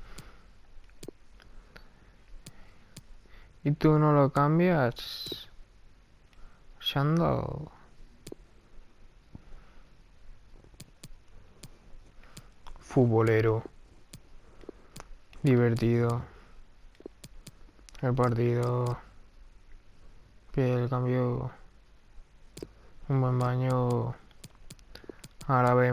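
Short menu clicks tick as selections change.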